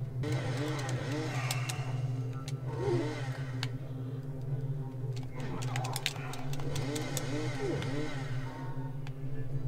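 Game music plays with a steady low drone.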